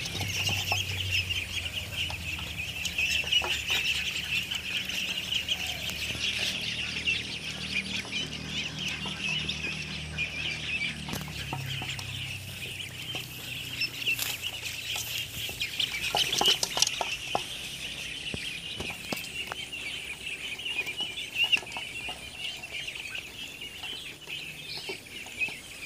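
Many ducklings peep and cheep constantly, close by.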